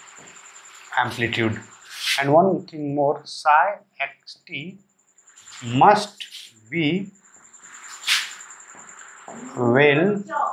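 A young man speaks calmly, explaining, close by.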